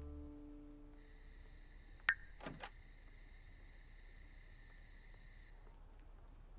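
A soft electronic chime sounds.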